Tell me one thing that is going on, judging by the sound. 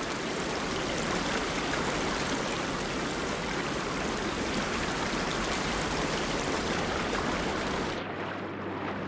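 Steam hisses loudly and steadily, then stops.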